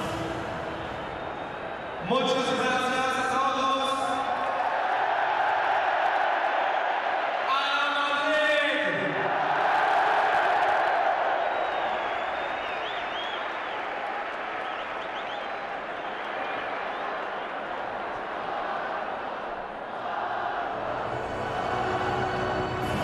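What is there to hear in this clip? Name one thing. A large crowd cheers and roars in a huge echoing stadium.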